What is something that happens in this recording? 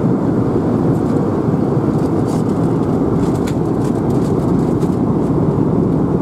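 A jet engine roars with a steady, deep rumble inside an aircraft cabin.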